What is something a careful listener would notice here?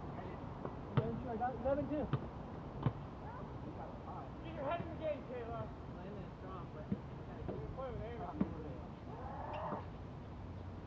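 Young men call out to each other at a distance.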